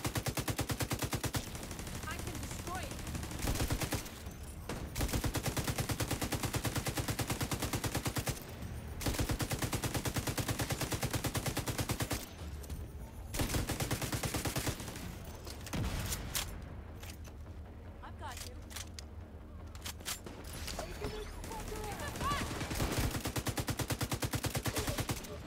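A rifle fires in rapid bursts close by.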